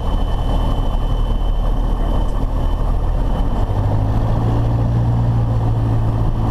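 A small propeller plane's engine drones loudly close by, its pitch rising partway through.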